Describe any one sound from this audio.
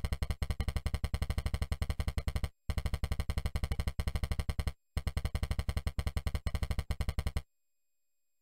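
A game's text blips rapidly, one short electronic beep after another.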